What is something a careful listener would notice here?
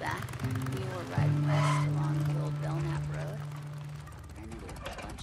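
A motorcycle engine idles and revs loudly.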